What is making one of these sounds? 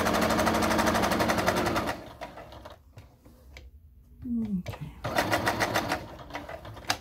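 A sewing machine stitches with a rapid, steady whir and tapping.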